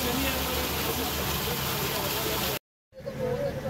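Water trickles and splashes down a small fountain.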